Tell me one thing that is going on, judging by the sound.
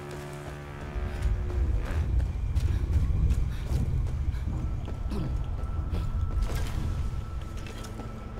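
Footsteps crunch on dry, stony ground.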